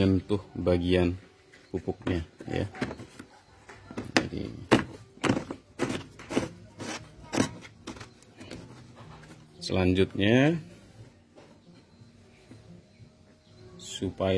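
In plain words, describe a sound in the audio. A plastic cap clicks and scrapes as it is twisted onto a plastic jug.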